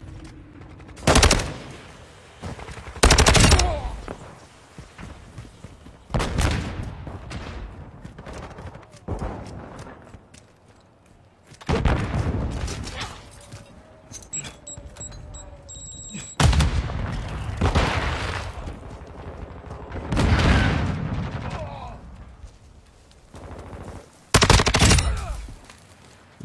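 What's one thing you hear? Gunshots and explosions from a video game burst out now and then.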